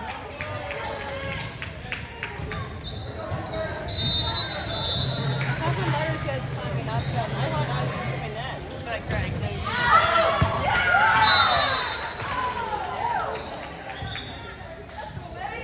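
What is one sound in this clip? Young women call out and cheer in a large echoing gym.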